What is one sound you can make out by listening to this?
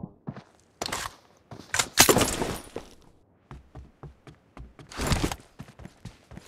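Rifle shots ring out in loud bursts.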